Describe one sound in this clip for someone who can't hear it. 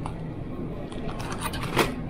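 A shopping cart rolls along a hard floor.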